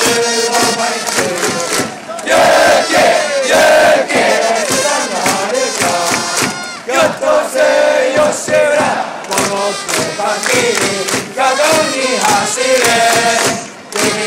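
A large crowd chants and sings loudly in unison outdoors.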